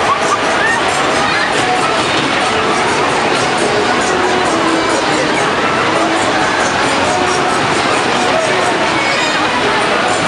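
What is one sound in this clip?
A fairground ride rumbles along its track.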